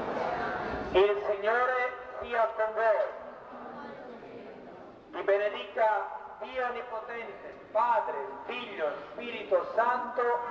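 A man sings through a loudspeaker.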